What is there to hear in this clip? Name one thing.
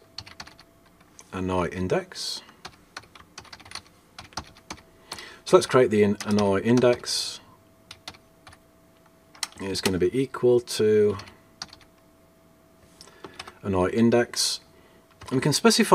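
Computer keys click as a man types.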